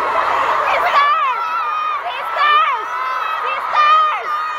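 A crowd of young women shouts and cheers excitedly nearby.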